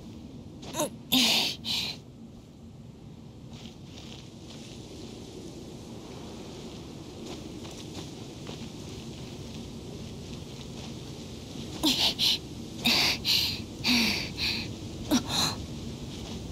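Hands and feet scrape and thud against stone during a climb.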